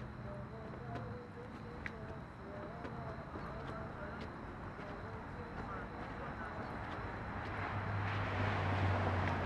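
Footsteps tap slowly on hard pavement.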